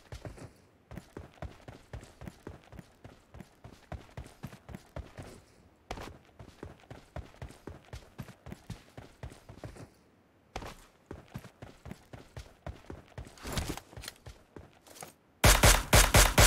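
Footsteps tread over rock.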